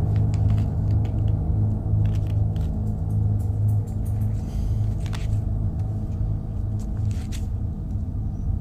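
Paper rustles and crinkles under a cat's paws.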